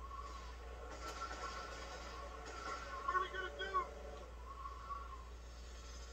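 Car tyres screech while skidding.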